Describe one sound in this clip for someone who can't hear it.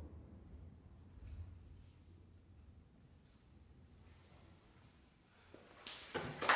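A harp plays softly.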